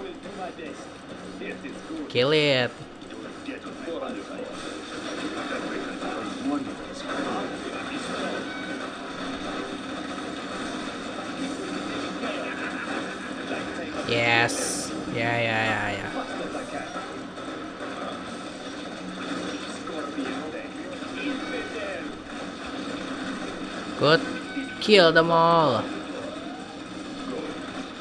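Gunfire and explosions rattle and boom in a battle game.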